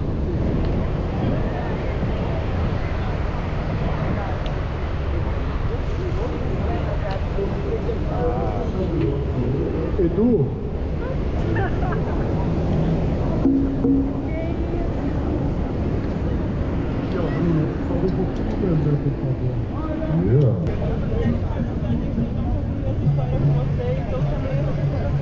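A crowd of people chatters outdoors on a busy beach.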